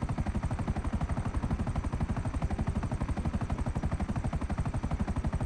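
Helicopter rotor blades thump rapidly and steadily from inside the cabin.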